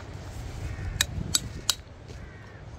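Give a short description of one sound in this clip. A metal chisel clinks against rock.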